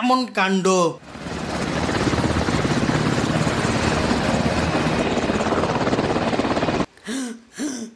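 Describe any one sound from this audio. A helicopter's rotor whirs loudly and steadily.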